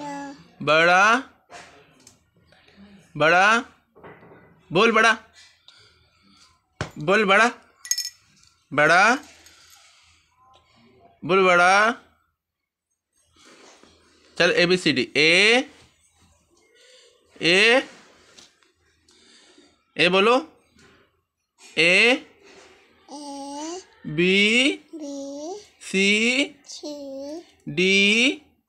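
A small child speaks close by in short, hesitant bursts.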